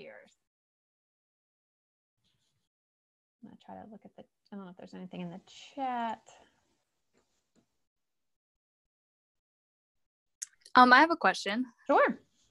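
A woman speaks calmly over an online call, with pauses.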